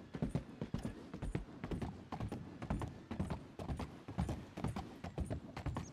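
Horse hooves thud on wooden planks.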